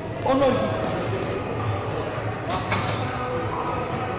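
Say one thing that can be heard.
A heavy barbell clanks as it is racked.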